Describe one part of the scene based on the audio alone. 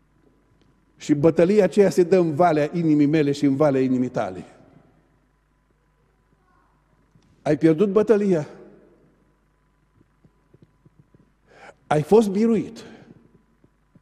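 A middle-aged man speaks with emphasis into a microphone, in bursts with long pauses.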